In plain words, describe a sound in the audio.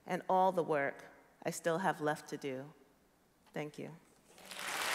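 A woman speaks calmly into a microphone on stage.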